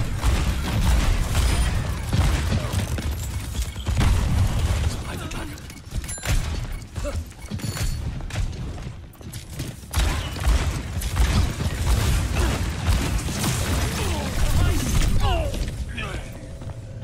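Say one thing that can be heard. Gunshots and blasts crack in rapid bursts in a video game.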